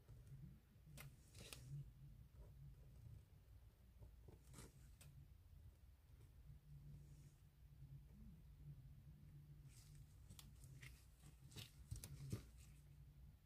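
Gloved hands tap and rustle on a hard surface.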